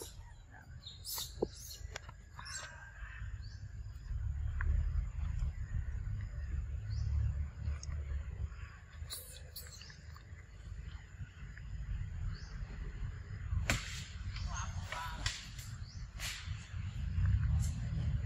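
A plastic snack wrapper crinkles as a monkey handles and bites at it.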